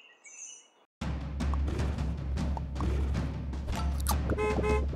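Upbeat game music plays loudly.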